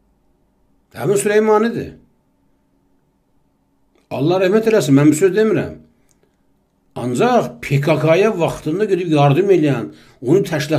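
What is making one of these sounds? A middle-aged man speaks calmly into a close microphone, in pauses.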